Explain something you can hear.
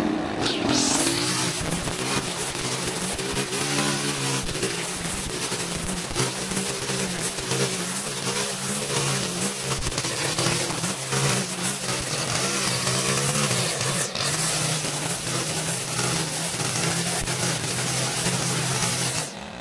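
A string trimmer engine whines steadily and rises and falls in pitch.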